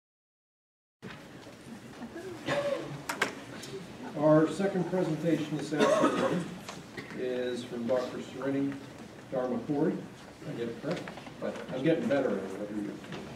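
A man speaks calmly into a microphone, heard over a loudspeaker in a large room.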